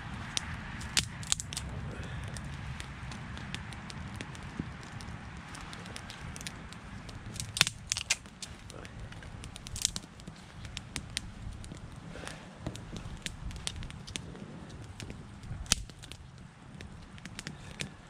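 Twigs snap and clatter as hands place them on a fire.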